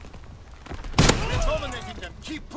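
A rifle fires with a loud bang that rings out.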